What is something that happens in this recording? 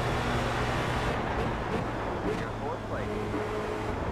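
A racing car engine's pitch drops as it shifts down and slows.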